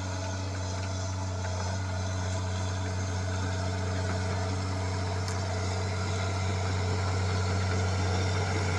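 A bulldozer's diesel engine rumbles steadily and grows louder as it approaches.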